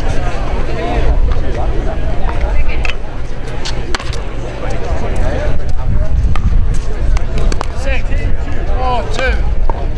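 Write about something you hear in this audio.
Pickleball paddles strike a plastic ball.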